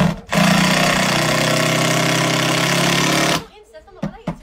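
A power drill whirs steadily, close by.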